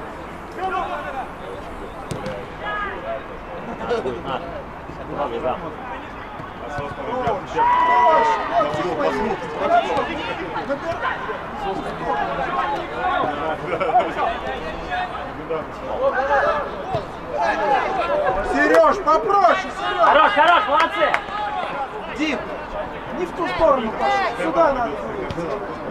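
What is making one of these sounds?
Men shout to each other across an outdoor pitch.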